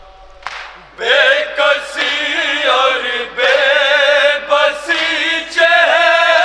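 A crowd of young men chants loudly in unison.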